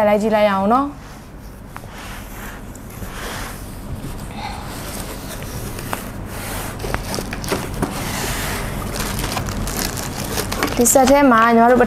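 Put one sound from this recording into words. Cardboard and paper rustle as a box is unpacked.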